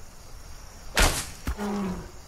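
A bowstring snaps as an arrow is shot.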